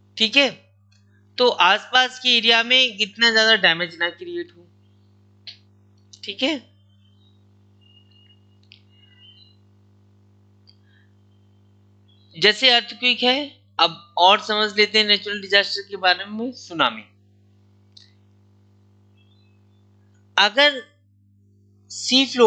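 A man speaks calmly into a close microphone, explaining with pauses.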